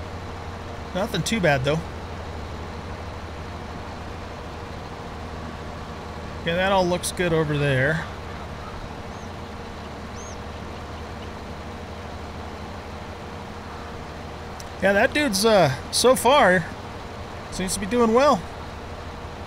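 A man talks calmly into a close microphone in short bursts.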